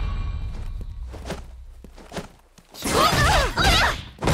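Punches and kicks land with sharp, heavy thuds in a fighting game.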